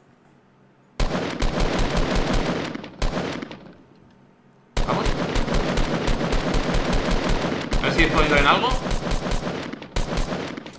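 An assault rifle fires rapid bursts of gunshots in a video game.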